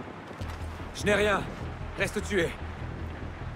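A young man speaks intently, close by.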